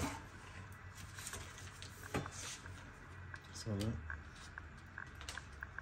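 Hands press and pat soft food in a dish.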